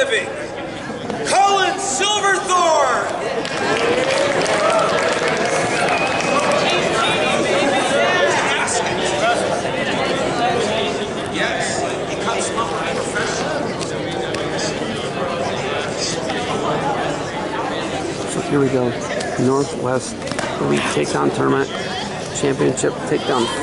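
A man speaks loudly to a group, heard close by.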